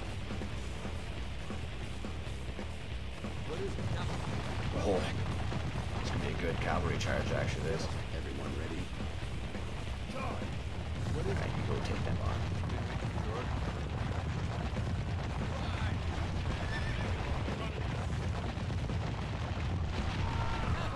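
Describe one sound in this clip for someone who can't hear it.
Weapons clash and clatter in a battle.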